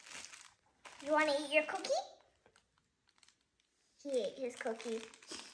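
A young girl talks excitedly up close.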